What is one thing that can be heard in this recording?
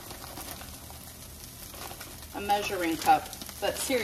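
Frozen vegetables rattle as they pour into a pan.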